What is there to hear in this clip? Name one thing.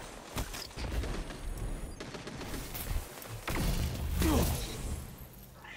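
Gunshots ring out in sharp bursts.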